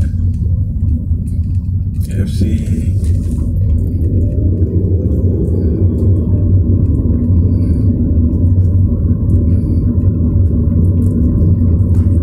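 A car engine hums steadily with a low rumble from inside the car as it drives along a road.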